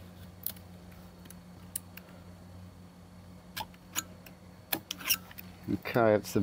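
A small metal tool scrapes and taps against a hard plastic box.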